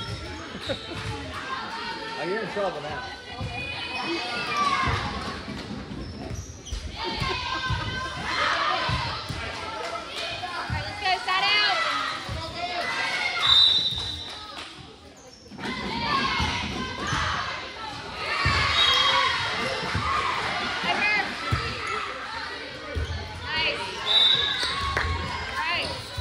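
Girls call out and chatter in a large echoing gym.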